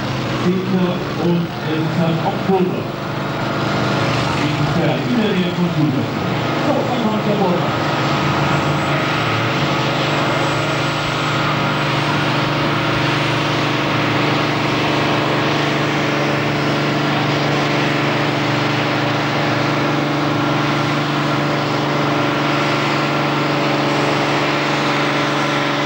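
A tractor engine roars loudly and steadily as it pulls a heavy sled.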